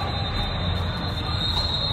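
Shoes thud and squeak on a hard floor as a girl runs.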